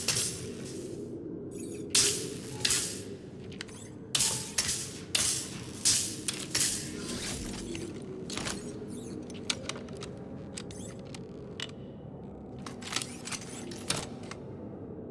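Hands scrape and thump against ice while climbing.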